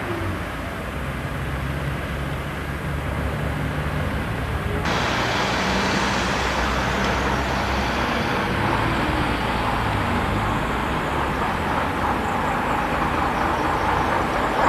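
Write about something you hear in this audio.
Car engines and tyres hum steadily on a street nearby.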